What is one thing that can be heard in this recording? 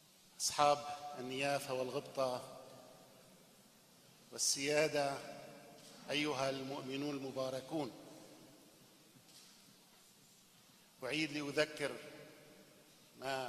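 An elderly man chants slowly into a microphone, echoing through a large hall.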